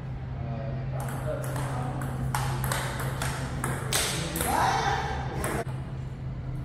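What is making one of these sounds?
A ping-pong ball clicks back and forth between paddles and the table.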